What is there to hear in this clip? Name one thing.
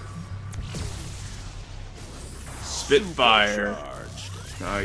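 Flames burst with a loud whoosh.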